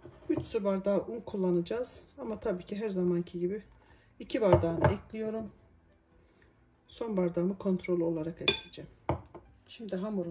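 A fork clinks and scrapes against a glass bowl.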